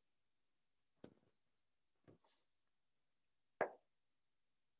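Chalk taps and scrapes on a chalkboard.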